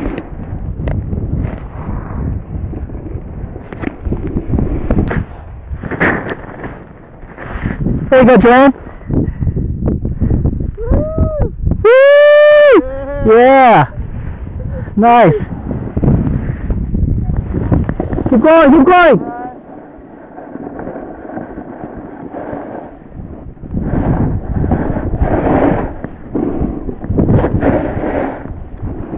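Snowboard and ski edges scrape over hard snow.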